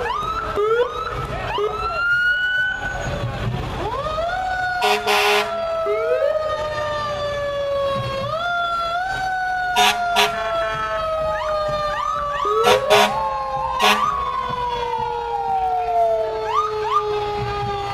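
Several sirens wail and whoop close by, rising and falling.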